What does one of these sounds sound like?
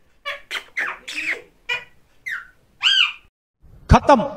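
Parrots chirp and squawk up close.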